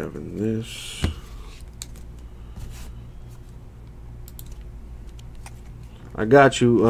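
Trading cards rustle and flick softly between fingers.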